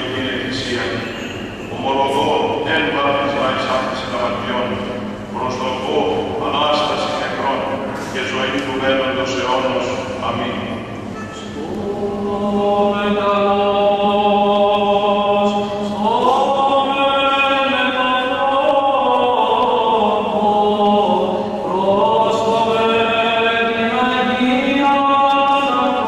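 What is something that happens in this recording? A choir of men chants together in a large echoing hall.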